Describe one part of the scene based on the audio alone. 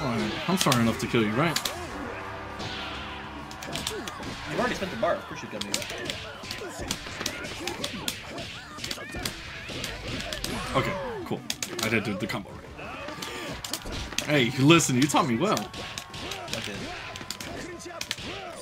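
Fighters grunt and shout as they attack.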